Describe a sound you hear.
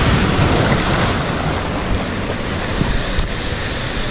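Water splashes and churns as a rider plunges into a pool.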